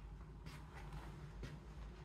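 A pillow thumps softly as it is plumped.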